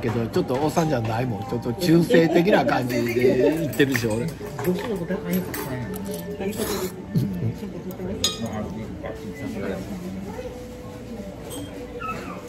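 A fork clinks and scrapes against a plate.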